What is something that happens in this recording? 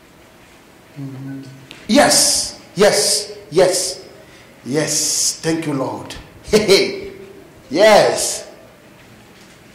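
A man speaks loudly and with animation through a microphone in an echoing room.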